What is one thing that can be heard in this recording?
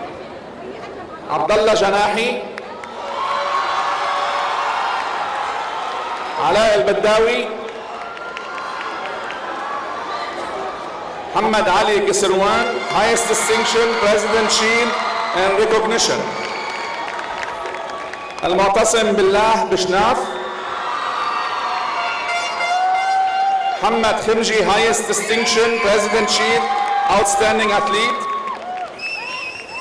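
A man reads out names through a loudspeaker in a large echoing hall.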